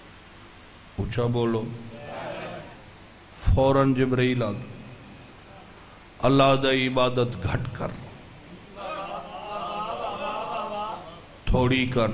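A man speaks into a microphone in loud, impassioned bursts with pauses between them.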